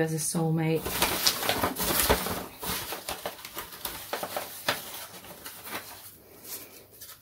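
A paper bag rustles and crinkles as a hand rummages inside it.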